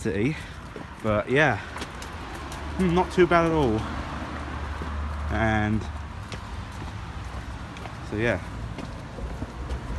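Footsteps walk along a path.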